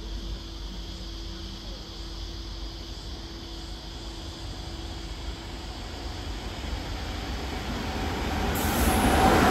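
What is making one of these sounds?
A train approaches and rumbles louder as it pulls in.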